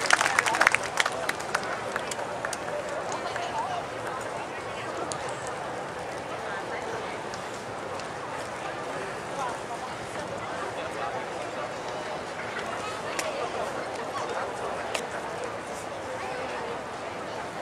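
A crowd murmurs quietly in the open air.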